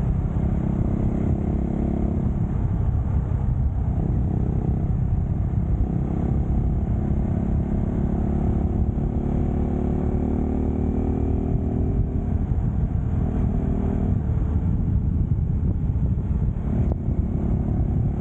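A motorcycle engine hums as it rides along.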